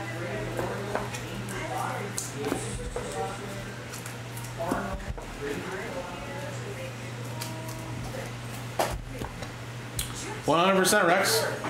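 Plastic card cases click and rustle in hands.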